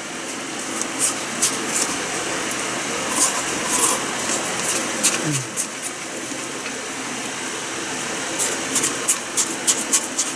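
A plastic spoon scrapes and taps against a cup.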